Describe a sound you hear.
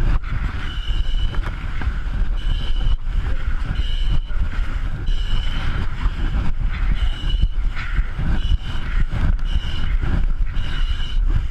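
A fire hose scrapes and drags across a concrete floor as it is rolled up.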